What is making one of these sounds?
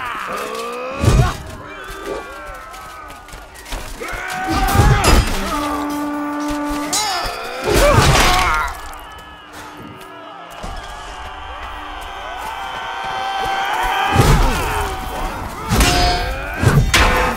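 Steel swords clash and clang in sharp, ringing strikes.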